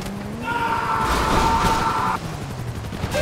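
A car splashes into water.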